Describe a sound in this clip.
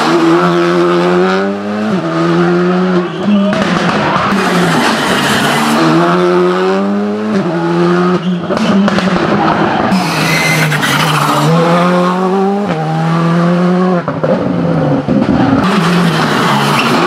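Rally car engines roar loudly, revving up and down through the gears.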